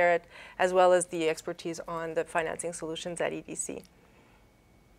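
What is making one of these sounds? A young woman speaks clearly and calmly into a microphone, close by.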